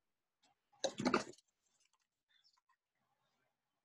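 A sheet of paper rustles as it is turned.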